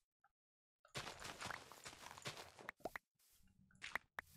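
A shovel digs into dirt with quick crunching strokes.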